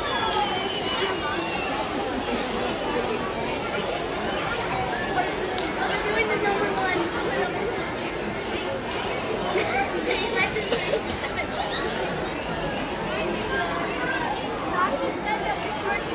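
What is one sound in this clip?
A large choir of young children sings together, heard from the audience in a big hall.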